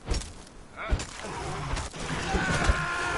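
A creature snarls and cries out.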